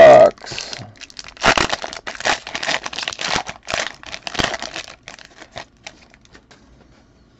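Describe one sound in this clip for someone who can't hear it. A plastic wrapper crinkles and tears open.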